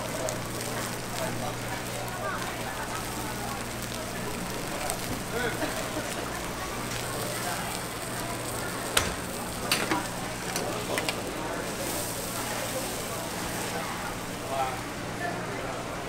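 Food sizzles steadily on a hot griddle.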